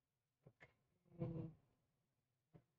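A young man speaks briefly and quietly.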